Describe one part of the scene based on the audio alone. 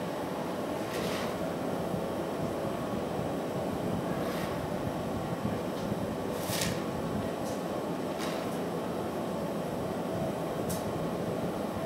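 A metal pipe clinks against metal.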